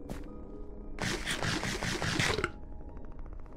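Food is crunched and munched in quick bites.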